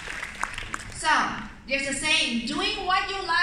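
A woman speaks with animation through a microphone over loudspeakers in a large echoing hall.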